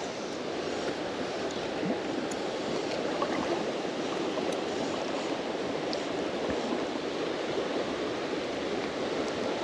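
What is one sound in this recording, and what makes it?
A river rushes and ripples steadily over stones nearby.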